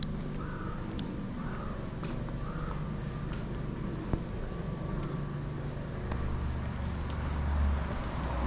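Footsteps tap slowly on concrete outdoors.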